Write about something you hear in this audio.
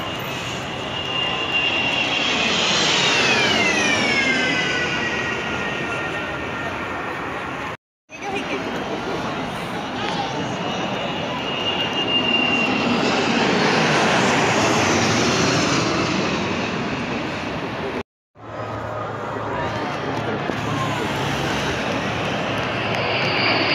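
Jet engines roar loudly overhead as low-flying planes pass, with a falling whine.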